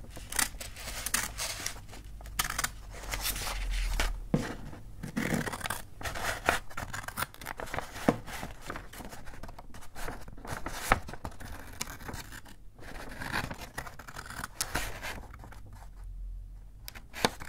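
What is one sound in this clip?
Scissors snip and slice through crisp paper.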